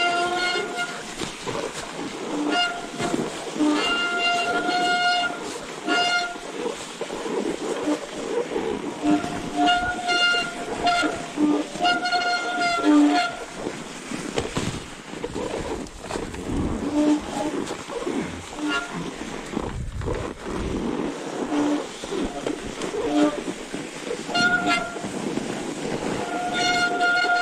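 Bicycle tyres crunch and hiss through deep snow.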